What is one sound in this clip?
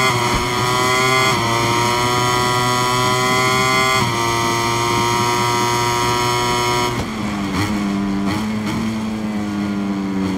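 A motorcycle engine screams at high revs, climbing in pitch and dropping sharply with each gear change.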